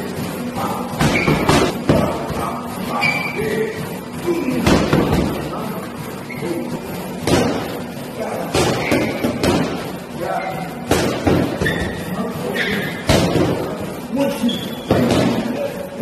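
Boxing gloves smack sharply against padded mitts in quick bursts.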